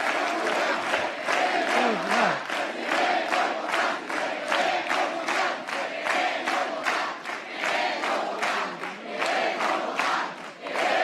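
A large crowd claps in a steady rhythm.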